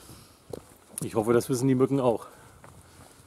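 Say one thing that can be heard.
A middle-aged man speaks close by, with animation.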